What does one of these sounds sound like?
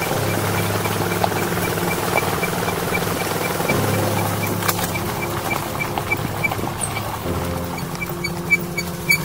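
A small motorcycle engine hums steadily as it rides along.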